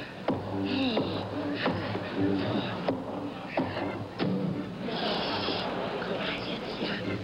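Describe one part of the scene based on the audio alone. A woman speaks with animation into a microphone on a stage.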